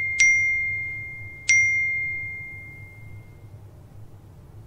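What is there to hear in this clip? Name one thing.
A phone chimes twice with a ringing tone that slowly fades.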